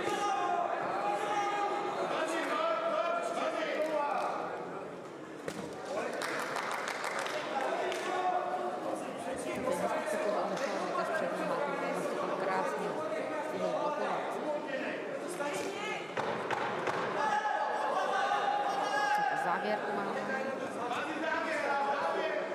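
A crowd cheers and murmurs in a large hall.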